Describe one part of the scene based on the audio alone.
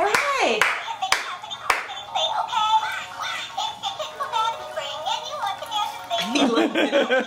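An electronic toy plays a bright tinkling tune.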